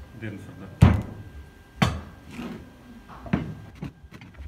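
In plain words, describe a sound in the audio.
Steel plates clank against each other on a table.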